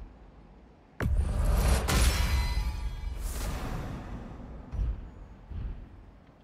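A booming magical surge rises and shimmers away.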